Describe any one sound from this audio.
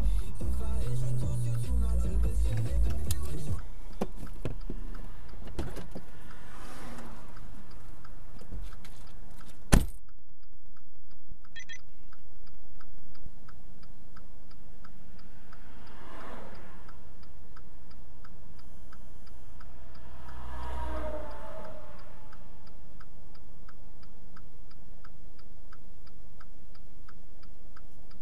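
A car engine idles inside the car.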